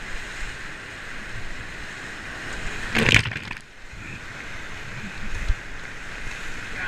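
Rushing whitewater roars steadily close by.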